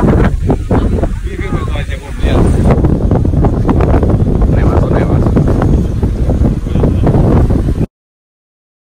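Men and women chatter loudly outdoors in wind.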